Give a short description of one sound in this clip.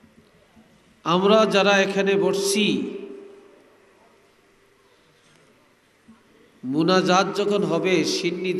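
An elderly man preaches loudly into a microphone, his voice ringing through loudspeakers, in drawn-out chanting bursts.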